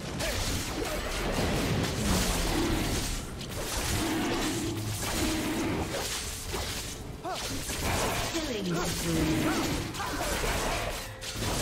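A huge beast roars and growls in rising and falling cries.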